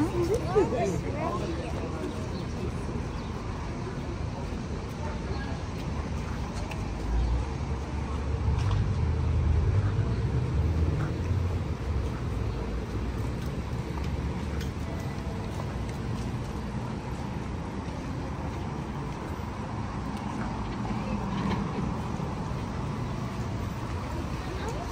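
Footsteps tap on a walkway as people walk past.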